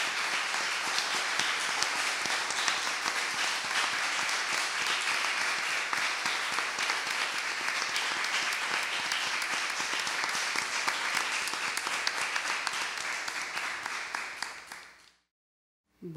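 An audience applauds steadily in a large hall, then the clapping dies away.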